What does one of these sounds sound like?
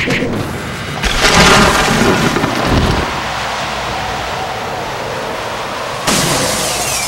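A frosty magic blast whooshes and crackles.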